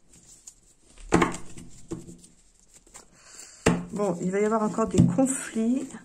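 Playing cards rustle and flick as hands shuffle them.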